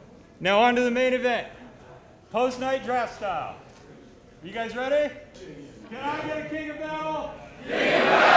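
A man shouts commands loudly in a large echoing hall.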